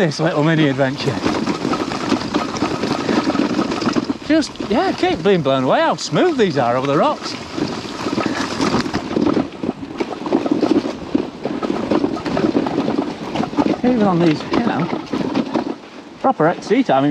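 Bicycle tyres roll and crunch over a rough dirt trail.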